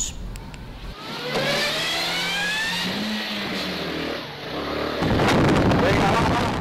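A motorcycle engine revs and roars while speeding along.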